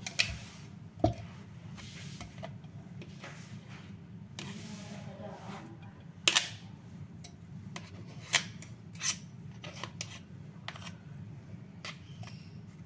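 A plastic spoon scrapes and taps against a jar.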